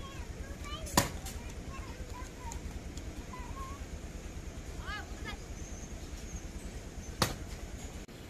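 An axe chops into wood with sharp thuds.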